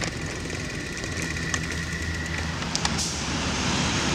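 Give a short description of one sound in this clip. A bicycle chain whirs as the pedals turn.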